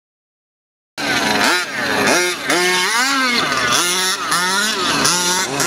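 A small electric motor whines, revving up and down sharply.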